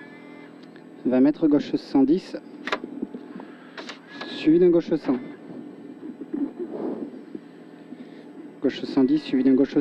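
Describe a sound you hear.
A man speaks calmly over a helmet intercom.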